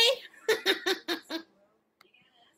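A middle-aged woman laughs loudly close to a microphone.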